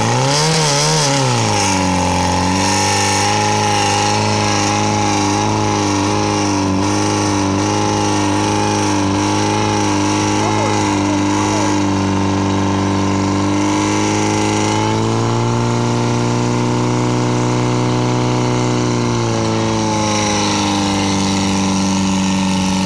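A portable fire pump engine runs at high revs.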